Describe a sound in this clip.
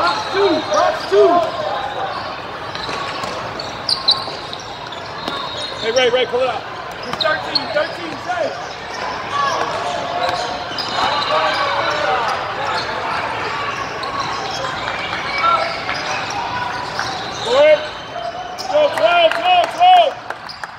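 A crowd of players and spectators chatters and shouts in the background.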